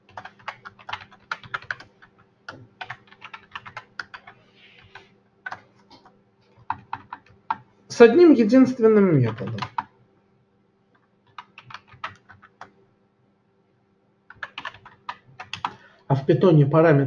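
Keys clatter on a keyboard in quick bursts.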